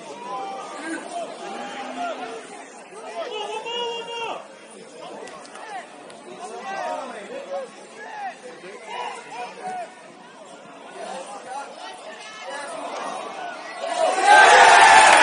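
Football players shout and call to each other across an open pitch outdoors.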